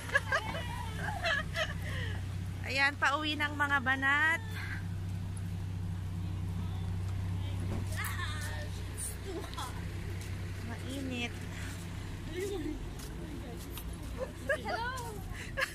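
Young women talk and laugh nearby.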